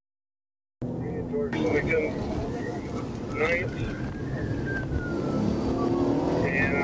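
A car drives along a road with a steady low rumble of engine and tyres, heard from inside.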